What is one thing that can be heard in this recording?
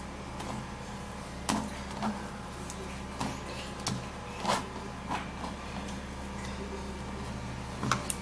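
Soft banana slices drop into a wooden bowl with light thuds.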